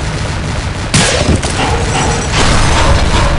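An explosion bursts nearby with a loud boom.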